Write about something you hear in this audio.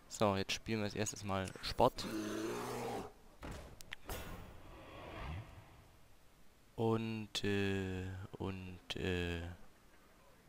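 Game sound effects whoosh and thud as cards are played.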